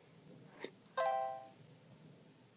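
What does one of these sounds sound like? A phone gives a short series of beeps.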